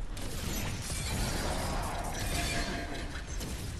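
A loud explosion booms and roars.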